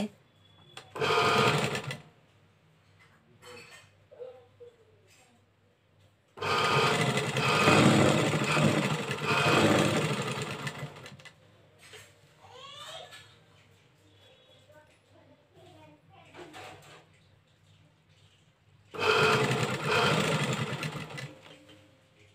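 A sewing machine runs in quick bursts of stitching.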